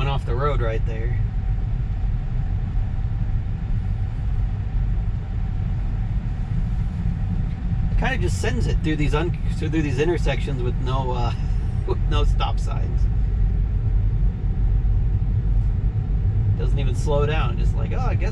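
A car's tyres rumble steadily on the road, heard from inside the car.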